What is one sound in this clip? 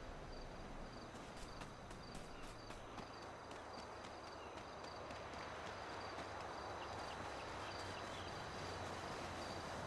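Footsteps run over grass and sand.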